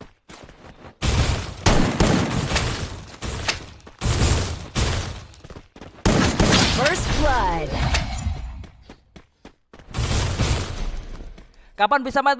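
Gunfire crackles in rapid bursts from a game.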